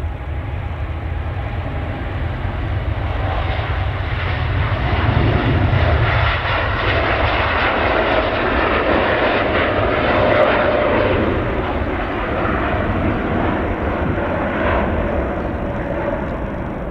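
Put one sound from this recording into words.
A jet airliner's engines roar loudly at full power as it takes off and climbs away.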